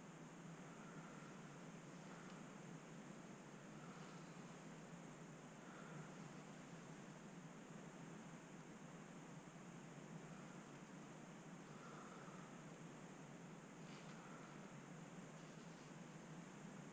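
A small electric pump motor hums steadily.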